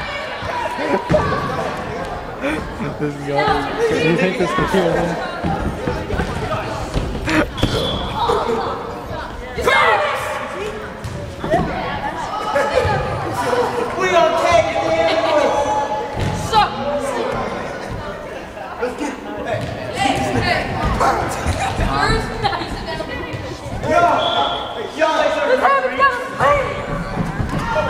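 Young people shout and chatter loudly in a large echoing gym.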